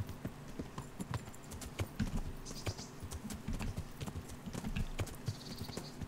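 Horse hooves thud steadily on a dirt path.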